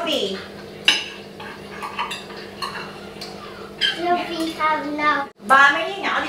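Cutlery clinks against plates.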